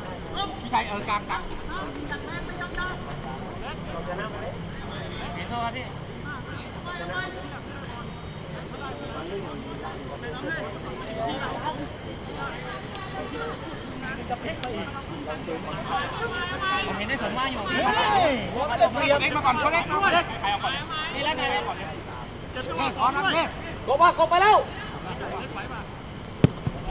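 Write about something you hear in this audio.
Young men shout and call out across an open field outdoors.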